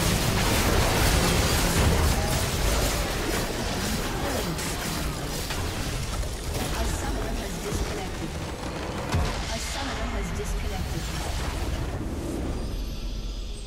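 Fantasy battle effects crackle, whoosh and clash in quick bursts.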